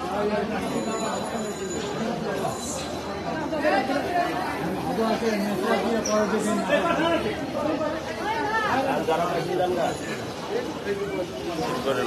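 A crowd of men and women talk over one another close by, in a busy, echoing space.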